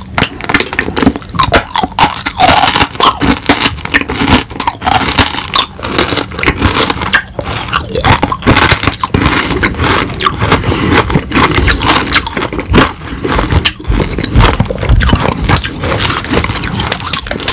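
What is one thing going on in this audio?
A man chews crunchy candy loudly and close to a microphone.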